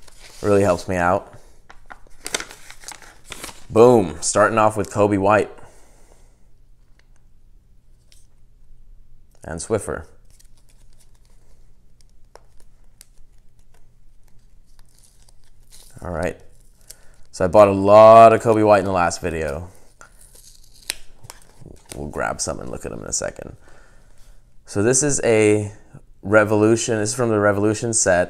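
A plastic card holder clicks and rustles in hands.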